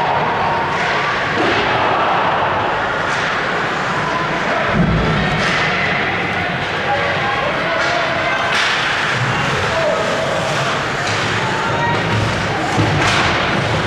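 A crowd murmurs and calls out.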